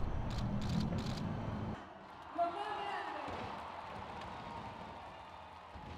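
Fireworks crackle and pop overhead.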